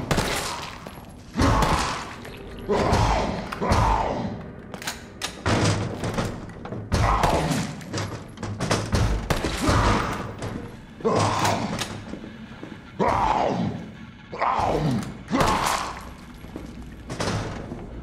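Gunshots fire again and again, each ringing off in an echoing hall.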